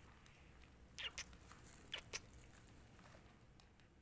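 Leafy stems rustle as a hand moves them.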